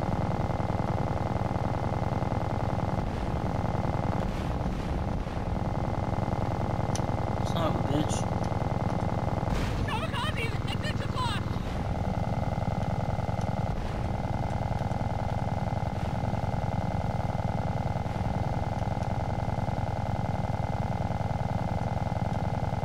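Small propeller planes drone steadily overhead.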